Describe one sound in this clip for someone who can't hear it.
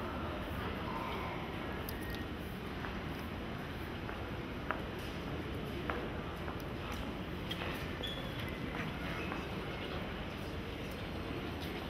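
Footsteps tap on a hard floor as people walk past.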